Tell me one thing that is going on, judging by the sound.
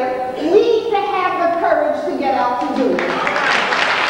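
A woman sings into a microphone in a large hall.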